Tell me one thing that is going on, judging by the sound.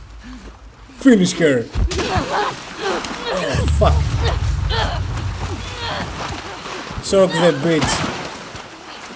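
A young man groans and gasps in distress.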